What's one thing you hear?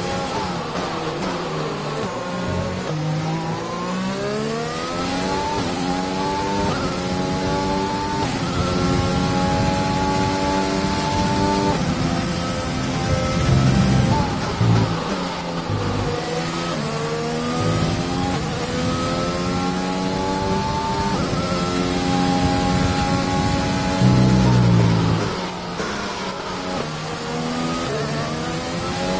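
A racing car engine screams, rising in pitch through each gear and dropping as it slows for corners.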